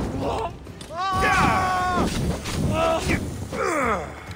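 Fire bursts and crackles with sharp impacts.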